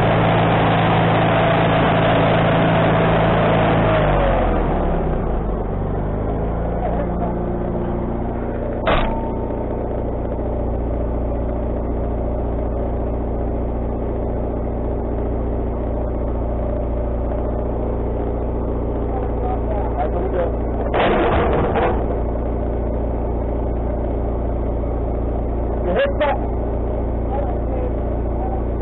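A sawmill engine runs with a steady drone.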